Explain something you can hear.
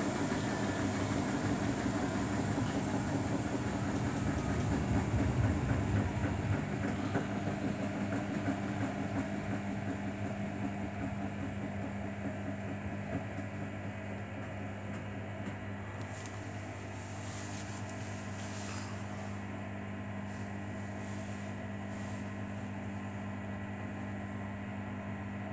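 A front-loading washing machine's motor hums.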